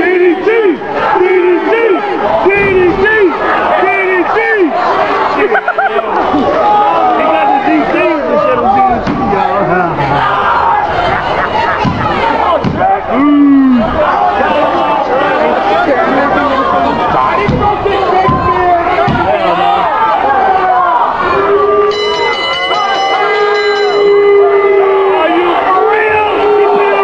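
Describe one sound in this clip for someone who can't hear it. A crowd of people shout and cheer loudly close by.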